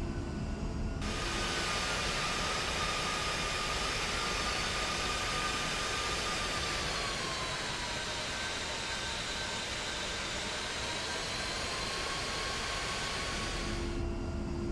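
Jet engines whine loudly from outside.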